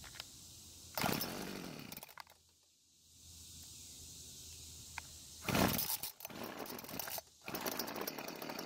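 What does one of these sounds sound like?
A starter cord is yanked several times with a rasping whir.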